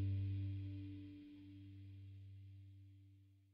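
A band's last guitar and bass notes ring out and fade away.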